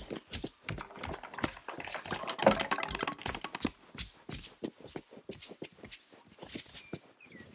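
Quick footsteps patter on paving and grass.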